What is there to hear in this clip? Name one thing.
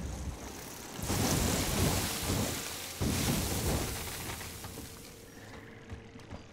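An explosion roars and crackles loudly.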